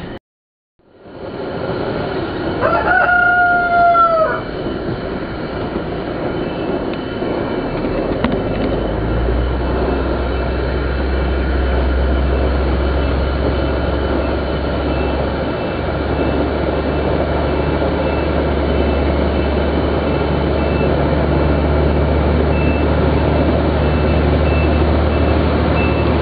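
A gas burner roars steadily outdoors.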